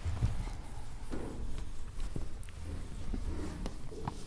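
A cloth duster rubs across a whiteboard.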